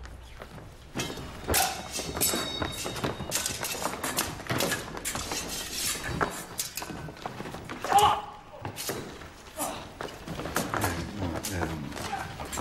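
Swords clash and clatter in a duel.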